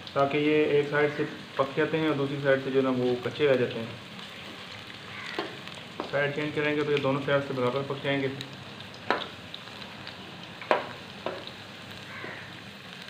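Oil sizzles steadily in a pan.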